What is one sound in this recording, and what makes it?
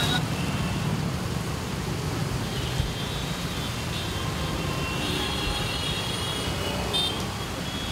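Heavy traffic rumbles and hums on a wet road.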